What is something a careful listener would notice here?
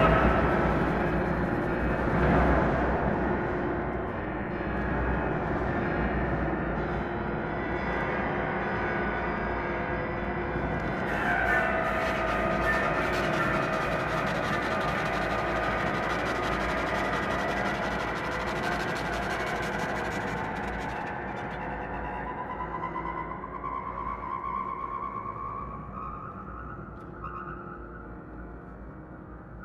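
A double bass is bowed.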